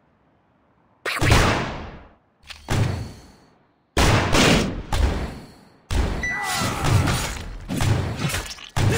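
Game combat sounds whoosh and crash in quick bursts.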